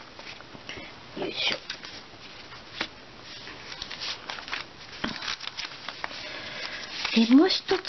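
Sheets of paper rustle and crinkle as hands shuffle them.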